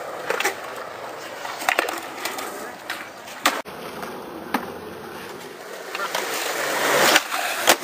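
A skateboard clacks sharply against concrete.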